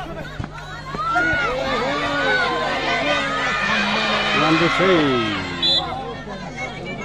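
A crowd cheers and shouts loudly, then settles.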